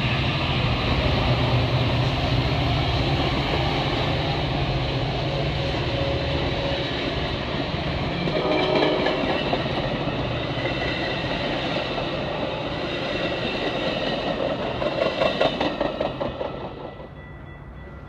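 A passenger train rumbles and clatters past close by.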